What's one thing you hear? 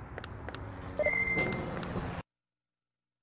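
A door slides open with a whoosh.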